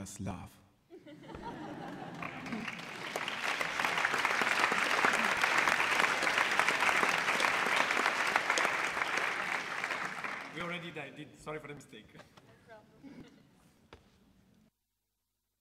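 An audience applauds loudly, then the applause fades.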